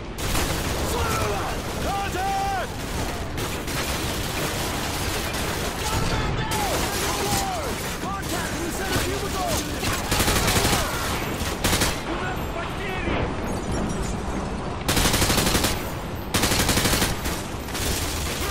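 Rifles fire in rapid bursts close by.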